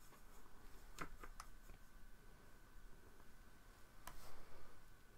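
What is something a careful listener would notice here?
Pens and brushes knock lightly as they are set down on a table.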